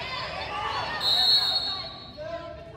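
A referee blows a whistle once, briefly.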